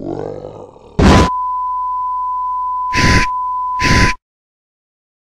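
A television plays a steady, high test tone.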